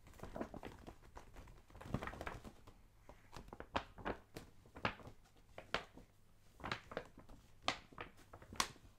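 Fingers tap and brush against a paper bag.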